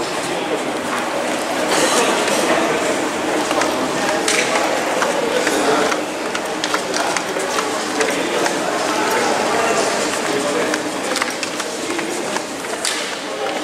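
An escalator hums and rattles steadily in a large echoing hall.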